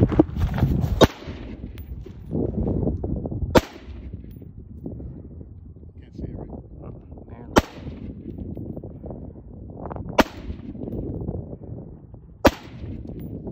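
A rifle fires single sharp shots outdoors, spaced a few seconds apart.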